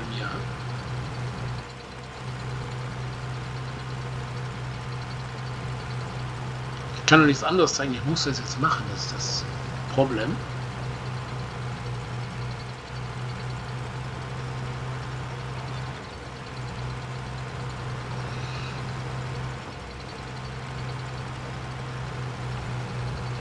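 A flail mulcher whirs through grass.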